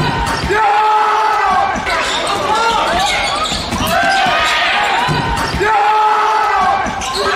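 Sneakers squeak sharply on the floor of a large echoing hall.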